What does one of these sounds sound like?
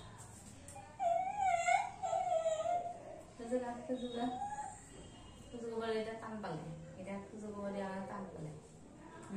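A young woman talks softly and encouragingly, close by.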